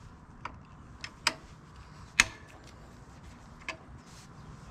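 A hand tool clicks and taps against metal parts.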